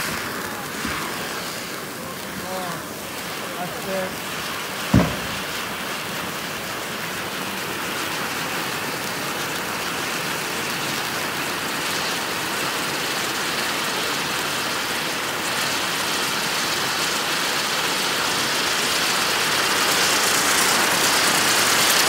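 A firework fountain hisses and crackles loudly, growing louder.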